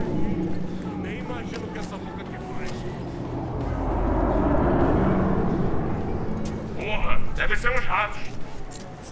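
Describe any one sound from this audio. A pistol fires several loud shots nearby.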